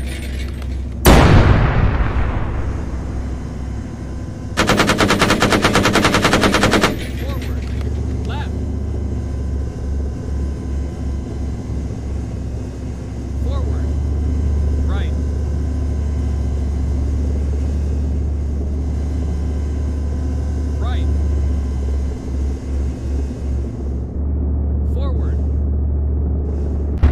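A vehicle engine hums low and steady.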